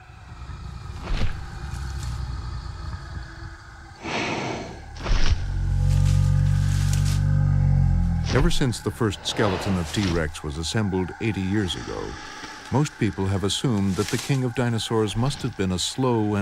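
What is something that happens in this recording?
A large beast roars with a deep growl.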